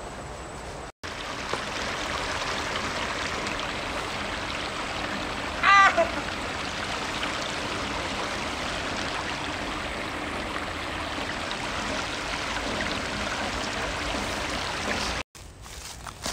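A shallow stream rushes and babbles over rocks.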